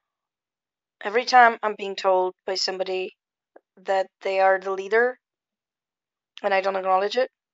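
A woman speaks calmly and close up, with pauses.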